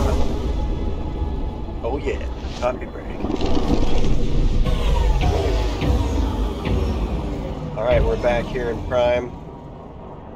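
A deep roaring rush of a ship's warp jump fills the air and fades out.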